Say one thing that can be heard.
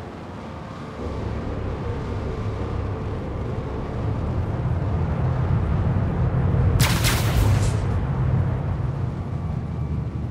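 A spacecraft engine starts up and hums with a low, deep rumble that slowly swells.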